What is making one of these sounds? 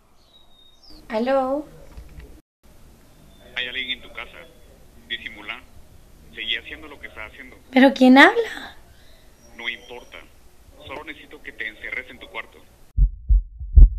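A young woman speaks softly close by.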